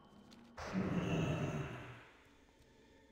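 A magical spell swells with a shimmering whoosh and fades.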